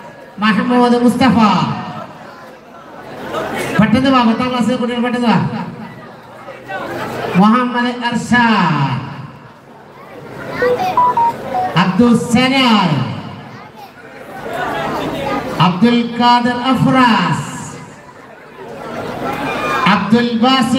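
A man sings a long, wavering chant through a loudspeaker, in drawn-out phrases with short pauses.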